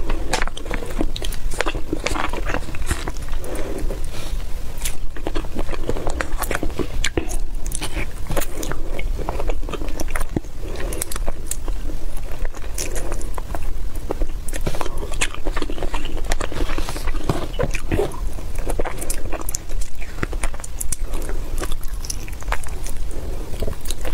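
A young woman chews and bites food close to a microphone.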